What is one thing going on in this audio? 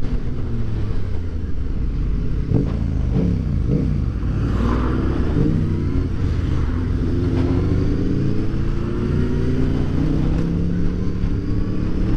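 A motorcycle engine hums close by and rises and falls in pitch as the gears change.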